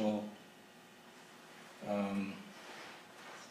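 An elderly man speaks calmly into a microphone, in short bursts.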